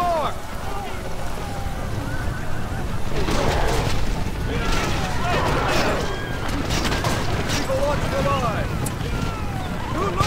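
Horses gallop in a charge.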